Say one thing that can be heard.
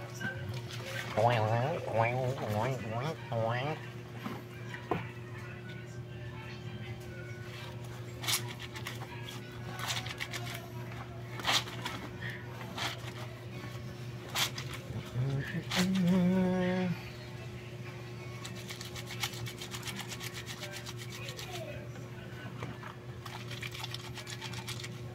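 Water splashes and sloshes in a tub as clothes are scrubbed.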